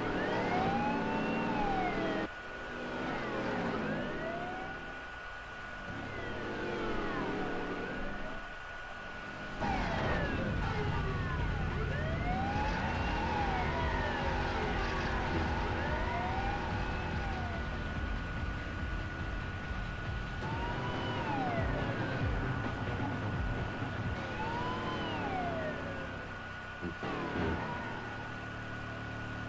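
A car engine roars as cars race along.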